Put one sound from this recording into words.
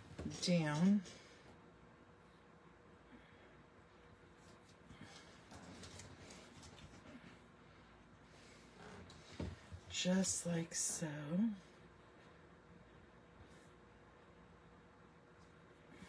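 Paper rustles softly.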